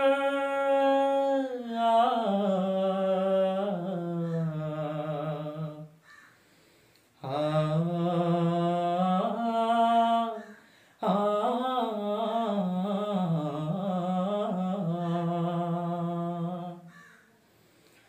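A young man sings a slow, held melody close by, pausing between phrases.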